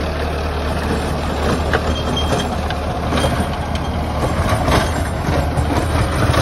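Clods of earth and stones knock against the tiller's blades.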